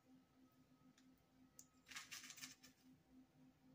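A lighter clicks and sparks close by.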